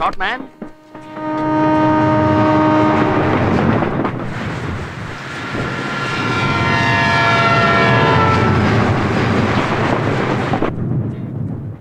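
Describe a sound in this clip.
A train rumbles past on its tracks.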